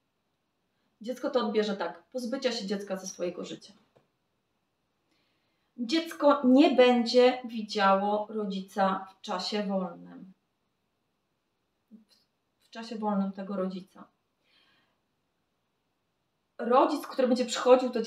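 A young woman speaks calmly and close by, with pauses.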